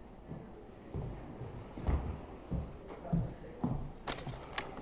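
Footsteps thud across a stage in a large room.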